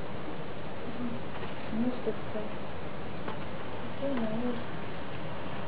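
A small kitten gives a few faint, high mews.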